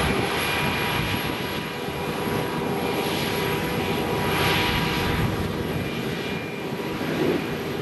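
A forage harvester's engine roars steadily close by.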